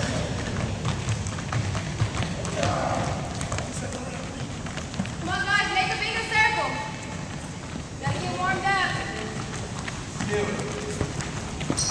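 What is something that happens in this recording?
Young men and women chatter faintly in the background.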